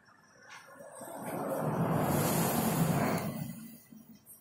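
A large vehicle rushes past close by.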